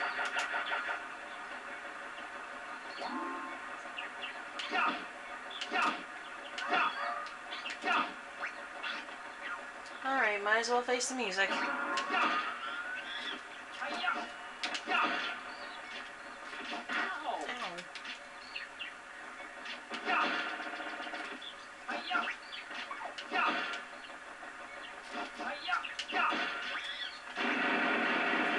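Video game music plays steadily through a television speaker.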